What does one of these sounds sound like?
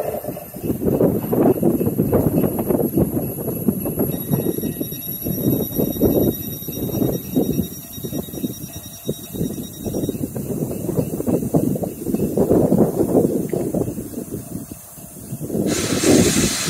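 A freight train of tank wagons rolls past close by, its wheels clattering over rail joints.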